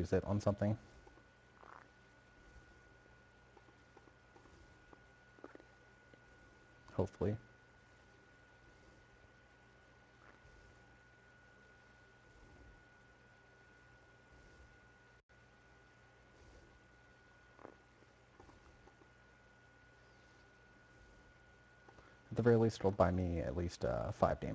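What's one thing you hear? A young man speaks calmly into a microphone in short bursts.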